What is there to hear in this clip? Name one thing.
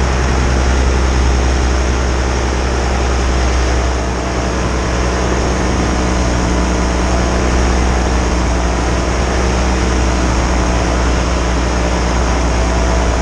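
A paramotor engine drones steadily in flight.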